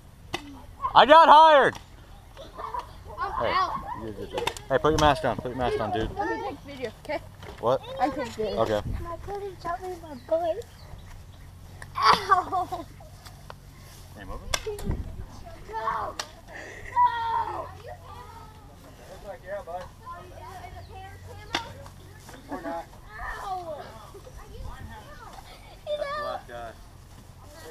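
Young children talk and call out with animation, close by outdoors.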